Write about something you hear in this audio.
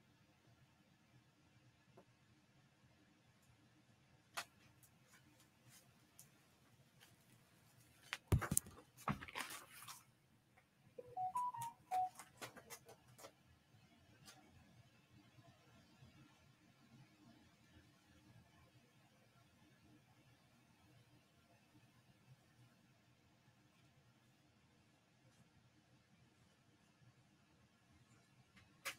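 Paper crinkles and rustles as it is peeled and handled.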